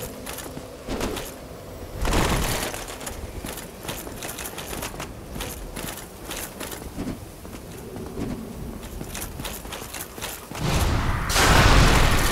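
Swords swing and clash in a fight.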